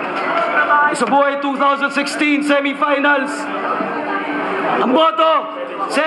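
A young man beatboxes and sings into a microphone, heard through loudspeakers.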